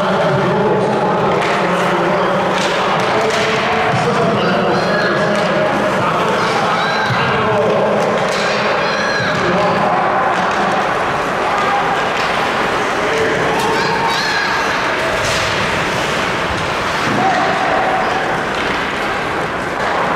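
Skate blades scrape and hiss across the ice.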